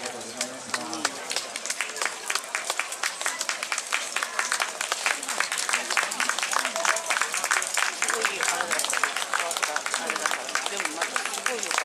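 A crowd murmurs outdoors in the background.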